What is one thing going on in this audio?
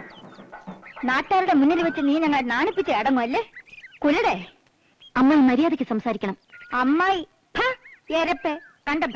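A middle-aged woman speaks loudly and sharply, close by.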